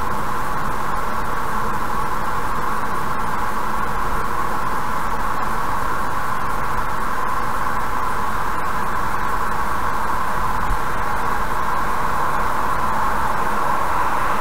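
A car drives fast along a highway with a steady rumble of tyres and wind.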